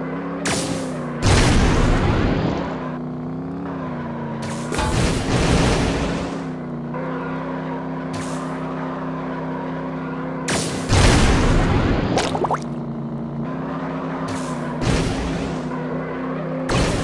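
A kart engine hums steadily.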